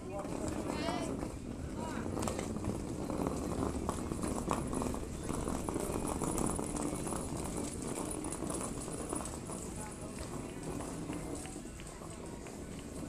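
Young players and adults chatter and call out across an open field.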